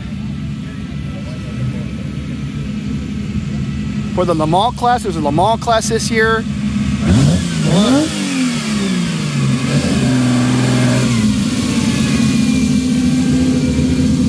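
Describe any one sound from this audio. A vintage sports car engine idles with a deep rumble.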